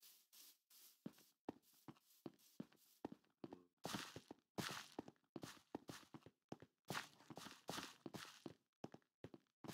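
Footsteps tap quickly and sharply on stone.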